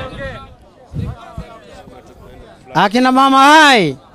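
A crowd murmurs and chatters nearby.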